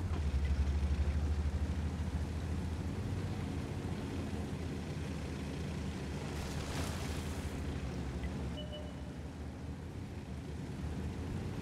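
Tank tracks clatter over cobblestones.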